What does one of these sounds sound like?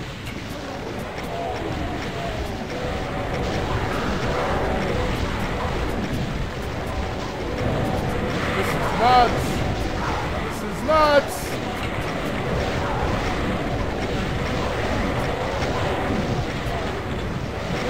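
Video game monsters growl and roar.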